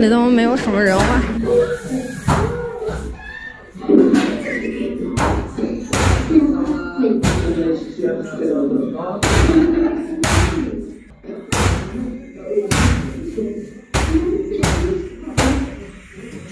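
A lump of noodle dough is slapped hard against a metal counter again and again.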